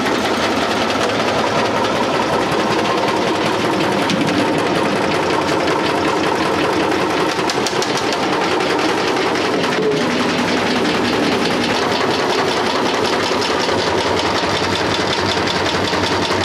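A machine hums and rattles steadily.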